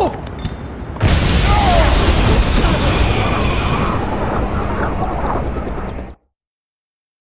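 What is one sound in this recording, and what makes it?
A helicopter roars overhead.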